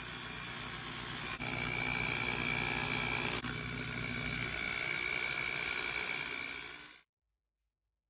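A small electric drill whirs steadily.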